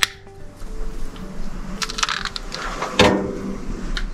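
A metal stove door creaks and clanks shut.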